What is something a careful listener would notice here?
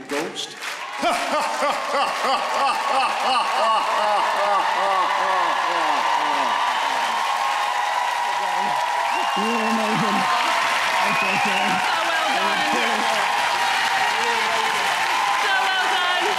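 Young men and women shout and whoop excitedly nearby.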